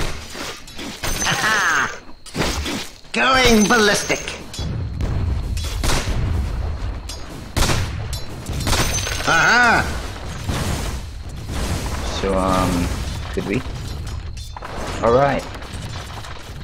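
Game spell effects whoosh and chime.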